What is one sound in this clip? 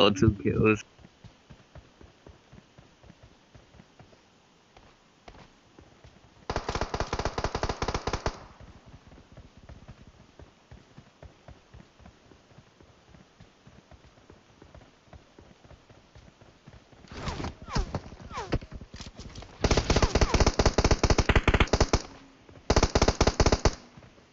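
Footsteps patter quickly on dirt.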